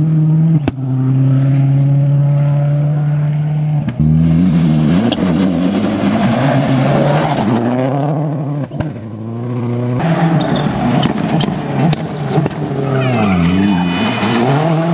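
A rally car engine roars loudly, revving up and down as it races past.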